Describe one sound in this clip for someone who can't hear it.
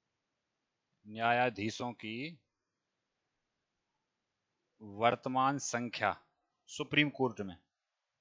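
A man speaks into a headset microphone, explaining with animation.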